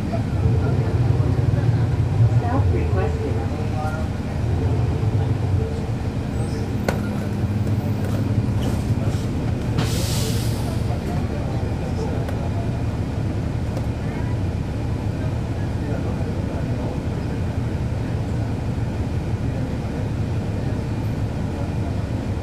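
A bus engine idles with a low, steady rumble close by.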